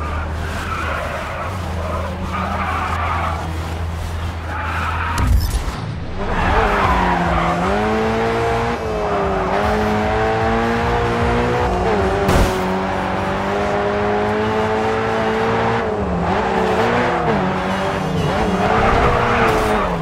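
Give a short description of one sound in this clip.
Tyres screech as a car slides through turns.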